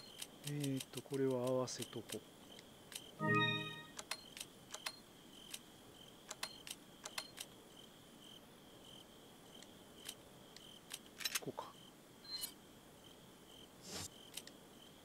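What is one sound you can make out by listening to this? Short electronic menu clicks tick again and again.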